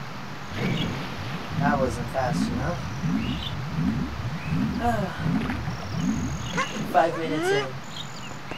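Water splashes and burbles.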